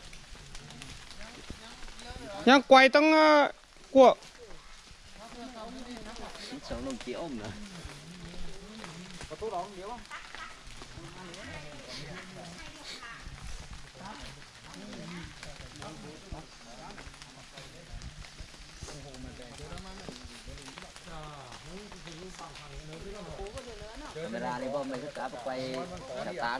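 Men talk with one another outdoors.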